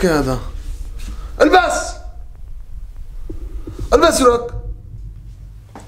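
A young man speaks in short bursts, close by, in a small echoing room.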